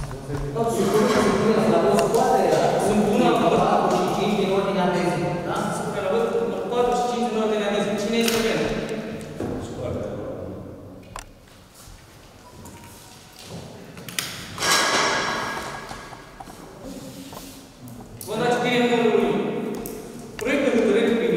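A man speaks calmly into a microphone in a room with some echo.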